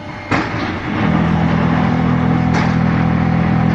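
A machine motor hums loudly and steadily.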